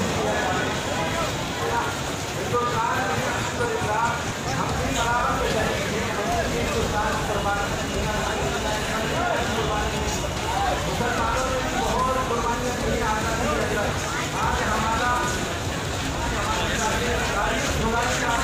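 A large crowd of men chants and murmurs outdoors.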